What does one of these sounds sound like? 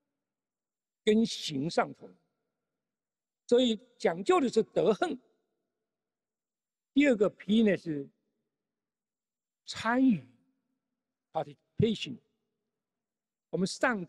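An elderly man speaks through a microphone in short, measured phrases with long pauses.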